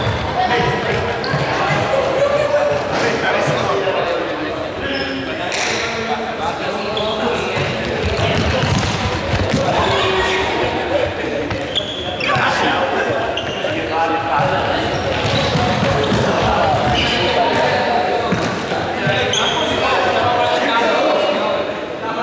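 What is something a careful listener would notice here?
Young men and women talk and call out to one another in a large echoing sports hall.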